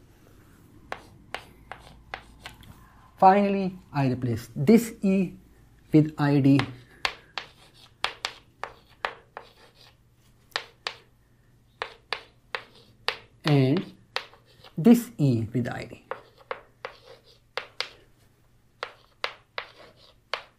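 Chalk taps and scratches on a blackboard in quick strokes.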